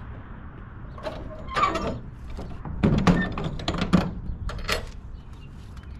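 Metal door latches clank and rattle.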